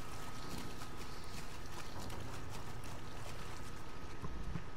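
Water splashes as someone wades through it.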